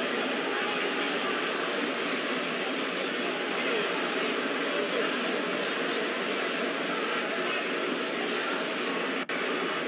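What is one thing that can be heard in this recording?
A large crowd roars steadily in a big echoing arena.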